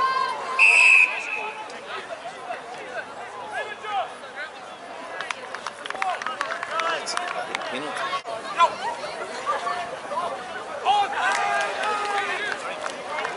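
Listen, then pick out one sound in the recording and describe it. A crowd of spectators shouts and cheers nearby, outdoors.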